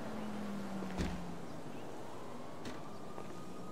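A fist knocks on a wooden door.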